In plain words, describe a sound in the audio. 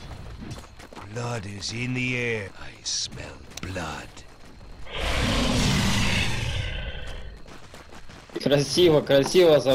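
An elderly man talks animatedly into a microphone.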